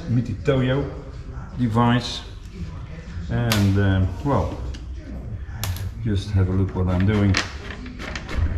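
An elderly man talks calmly close by.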